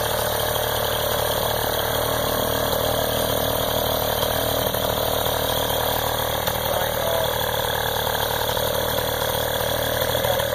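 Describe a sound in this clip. A small motor engine runs steadily nearby.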